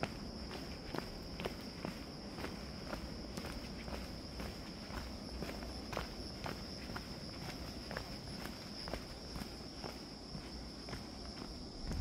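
Footsteps crunch steadily on a dry dirt trail.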